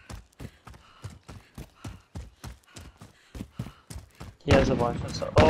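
Quick footsteps crunch on rocky ground.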